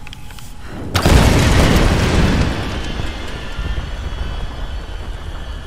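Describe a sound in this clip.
A loud explosion booms and rumbles, then slowly dies away.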